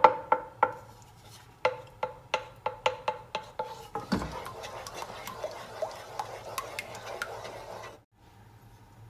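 A wooden spoon stirs thick sauce in a metal saucepan.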